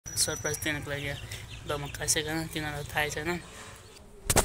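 A young man speaks close up, calmly.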